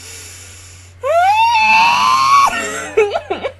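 A young woman sings a high, rising note loudly into a close microphone.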